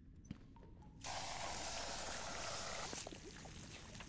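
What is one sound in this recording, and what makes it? A spray can hisses steadily.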